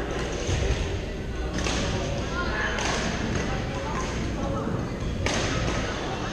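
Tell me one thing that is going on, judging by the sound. Shoes squeak on a hard floor in a large echoing hall.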